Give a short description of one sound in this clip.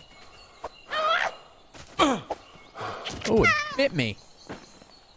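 A fox yelps and screams in short, high cries.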